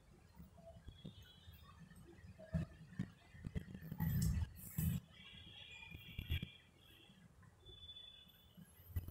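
Yarn rubs and rustles between fingers.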